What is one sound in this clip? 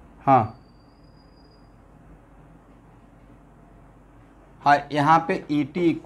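A man speaks clearly and calmly, close by.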